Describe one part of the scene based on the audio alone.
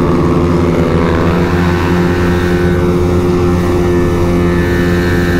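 A motorcycle engine roars loudly at high revs as the bike speeds up.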